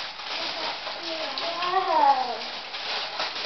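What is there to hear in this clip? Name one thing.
A child speaks with excitement nearby.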